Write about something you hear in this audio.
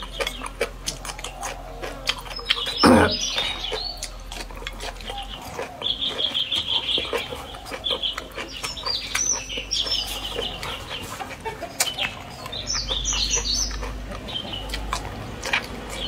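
A young woman slurps and bites into soft food, close to the microphone.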